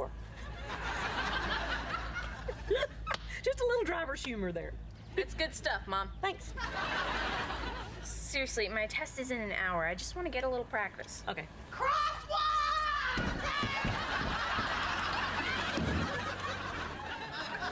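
A young woman speaks and exclaims in surprise.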